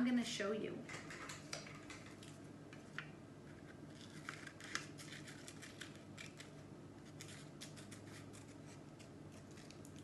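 Paper rustles and crinkles in hands.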